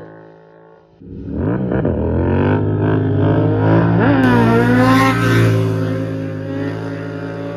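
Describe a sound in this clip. A motorcycle engine revs loudly nearby.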